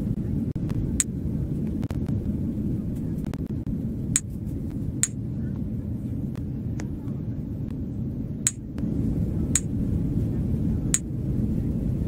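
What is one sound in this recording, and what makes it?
A short, bright chime sounds each time a drink is handed over.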